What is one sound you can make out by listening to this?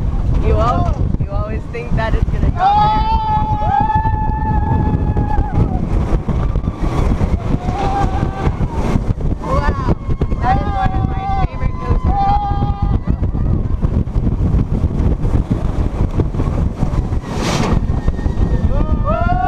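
Wind roars loudly and buffets the microphone.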